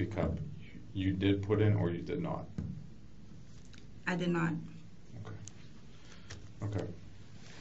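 A man questions another man firmly.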